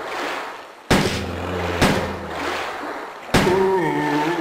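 Gunshots bang sharply several times.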